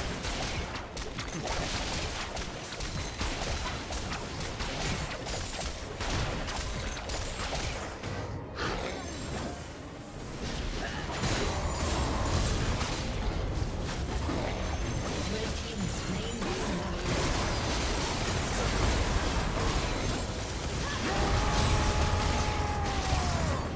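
Fantasy battle sound effects clash, blast and crackle throughout.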